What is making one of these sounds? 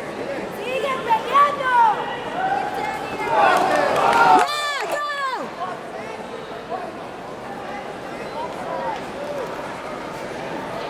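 A crowd of people cheer and shout in a large echoing hall.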